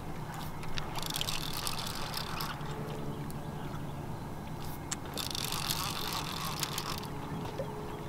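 Water splashes and rushes against a moving boat.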